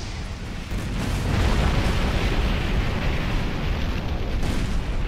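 Heavy mechanical thrusters roar steadily.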